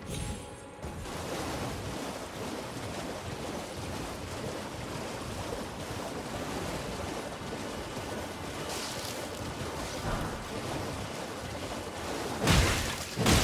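Hooves splash steadily through shallow water.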